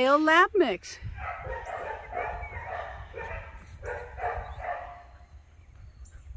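A woman talks to a dog outdoors.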